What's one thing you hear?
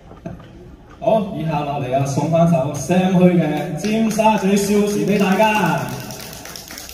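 A man speaks with animation through a microphone and loudspeakers in an echoing hall.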